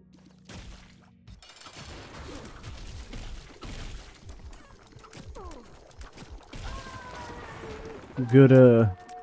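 Rapid video game sound effects pop and splatter during a fight.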